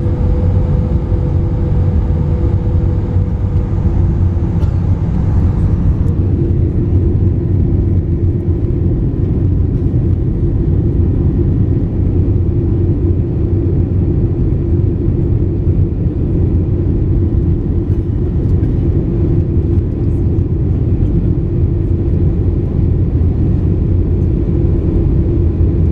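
Jet engines roar steadily from inside an airliner cabin in flight.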